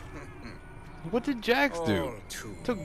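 A man speaks in a mocking tone, close by.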